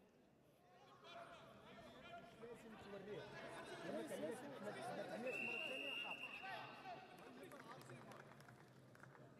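Several people shout and cheer in a large echoing hall.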